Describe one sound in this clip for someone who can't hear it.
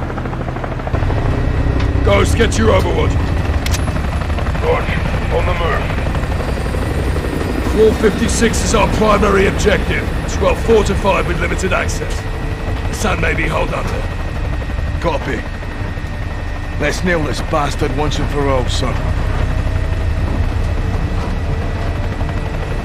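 A helicopter's rotor thrums steadily and loudly.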